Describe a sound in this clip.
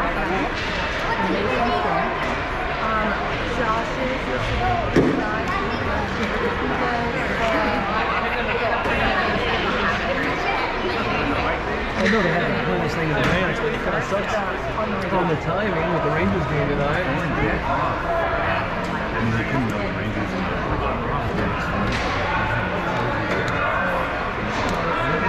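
Children shout and chatter in a large echoing rink.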